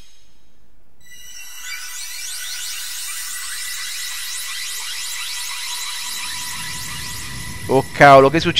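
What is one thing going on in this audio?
A magical shimmering whoosh swells and fades.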